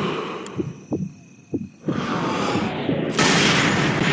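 A rifle fires a single sharp, loud shot.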